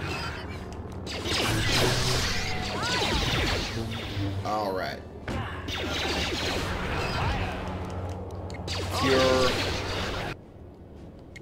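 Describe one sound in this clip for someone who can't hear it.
Lightsaber blows strike creatures with sharp sizzling hits.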